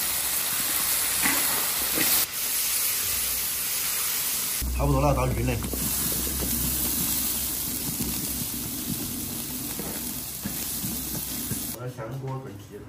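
Food sizzles loudly in a hot wok.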